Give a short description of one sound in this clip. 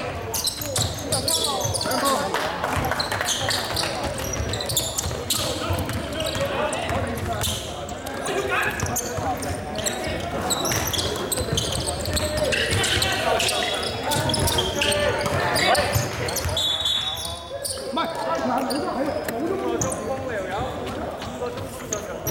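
Young men shout and call out to one another.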